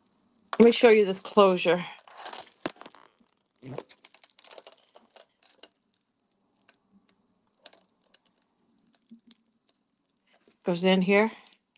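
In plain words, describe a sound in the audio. Beads and metal jewelry clink softly as they are handled.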